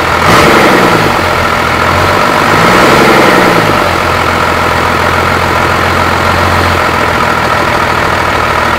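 A turbocharger whines and whooshes as it spins.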